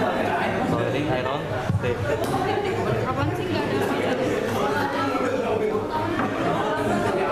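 Many young people chatter nearby in a busy room.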